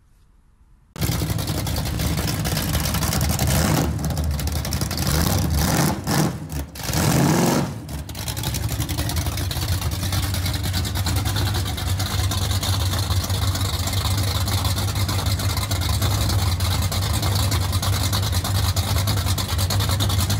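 A car engine idles with a loud, deep, lumpy rumble.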